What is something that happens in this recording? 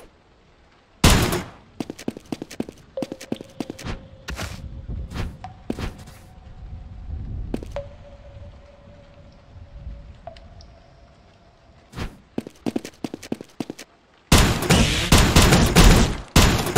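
A video game weapon fires bursts of energy shots.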